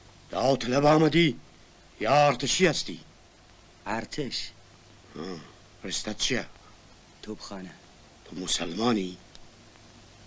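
An elderly man speaks calmly and earnestly, close by.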